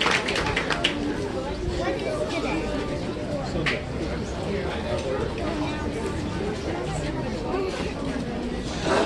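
A crowd of adults murmurs and chatters.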